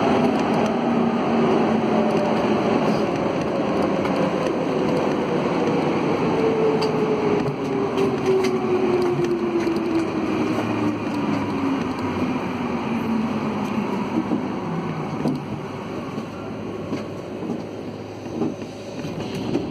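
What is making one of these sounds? A subway train rumbles through a station, slowing down with a falling whine.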